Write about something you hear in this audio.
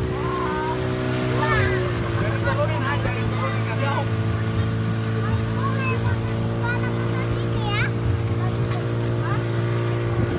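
Water rushes past a moving boat's hull.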